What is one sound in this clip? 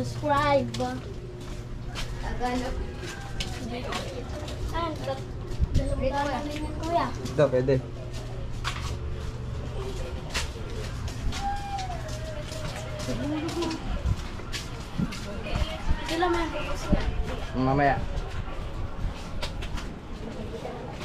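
Footsteps scuff along a narrow concrete path.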